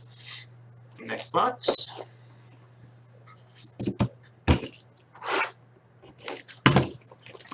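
Cardboard boxes scrape and knock as they are handled on a table.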